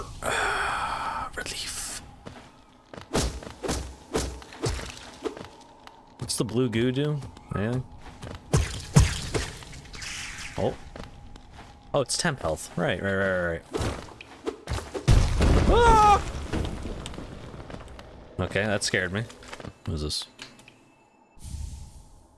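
Game sound effects of slashes and hits play.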